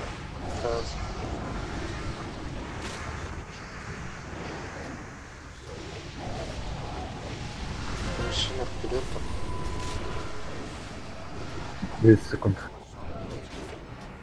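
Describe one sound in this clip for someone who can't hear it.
Magic spells whoosh and crackle in a busy fantasy battle.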